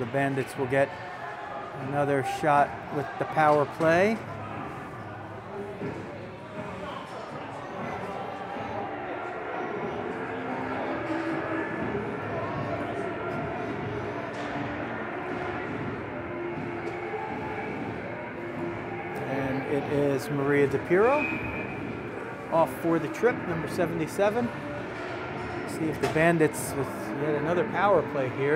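Young players shout and call out loudly in a large echoing rink.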